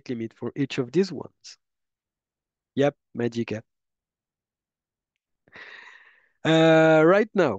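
A young man speaks casually through a webcam microphone, in short bursts with pauses.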